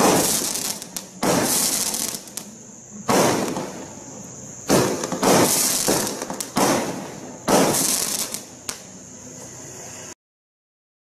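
Fireworks burst with loud booming bangs and crackle outdoors.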